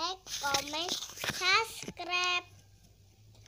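A young girl speaks up close in a high, lively voice.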